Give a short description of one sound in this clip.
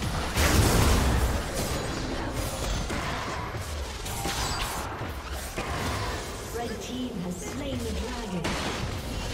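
Magic blasts whoosh and crackle during a fast fight.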